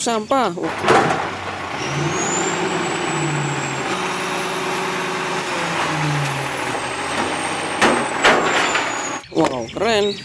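A garbage truck's lifting arm whines and hums.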